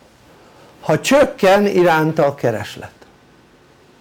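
An elderly man speaks clearly and with emphasis, close by.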